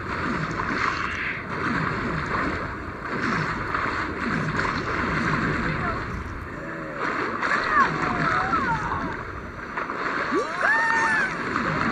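Water splashes and churns as a shark swims at the surface.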